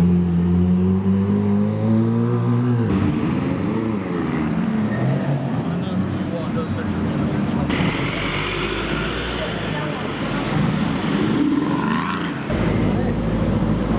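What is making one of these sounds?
Traffic hums on a city street.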